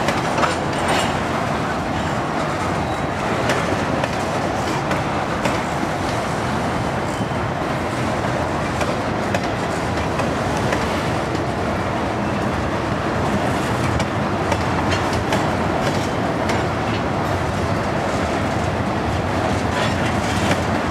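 Freight car wheels clack over rail joints.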